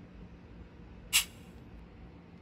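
A shaker sample plays once from a speaker.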